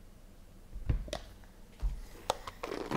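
Hands set a box and a stack of cards down on a table with soft knocks.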